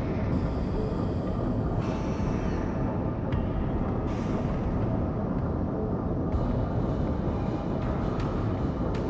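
A ship's engines rumble low and steady.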